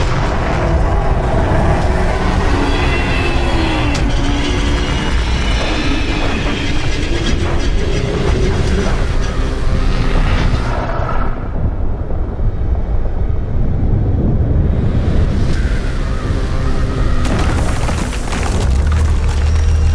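A deep, heavy rumble booms throughout.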